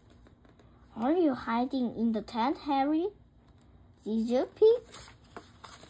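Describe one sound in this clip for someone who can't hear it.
A young child reads aloud in a high, sing-song voice close by.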